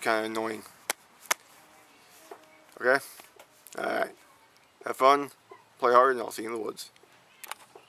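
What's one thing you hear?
A young man speaks close up in short bursts, with pauses.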